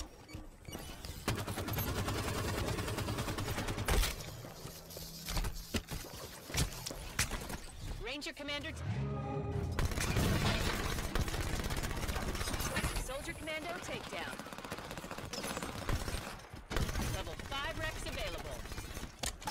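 Rapid gunfire rattles and bangs.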